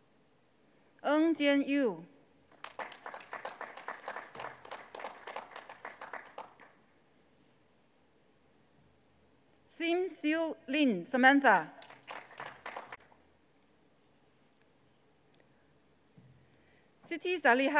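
A woman announces names through a loudspeaker in a large hall.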